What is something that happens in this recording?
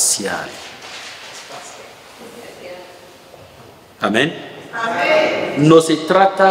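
A man speaks calmly into a microphone in a slightly echoing room.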